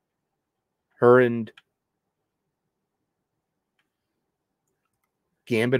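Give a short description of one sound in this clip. A man speaks in short bursts through a microphone.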